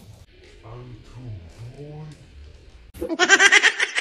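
A man talks playfully close by.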